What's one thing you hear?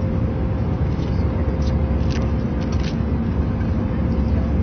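A paper bag rustles.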